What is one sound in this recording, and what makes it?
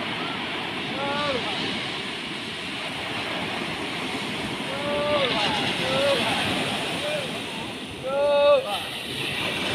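Men call out to one another in the distance.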